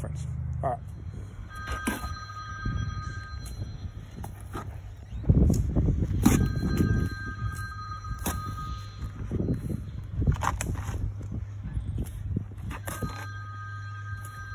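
A trowel scrapes and taps against bricks and mortar.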